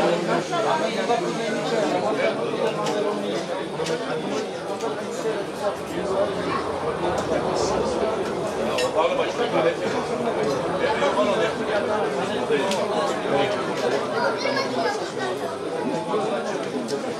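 A crowd of men and women chatter at once outdoors.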